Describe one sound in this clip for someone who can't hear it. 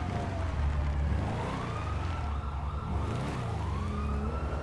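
Tyres skid on gravel.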